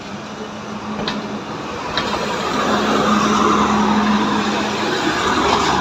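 A train's diesel engine hums steadily.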